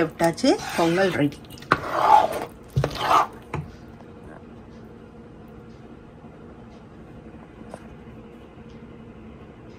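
A spoon stirs a thick mixture in a pot with soft squelching.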